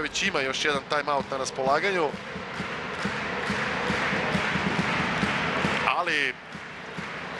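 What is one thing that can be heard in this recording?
A large crowd cheers and roars in an echoing hall.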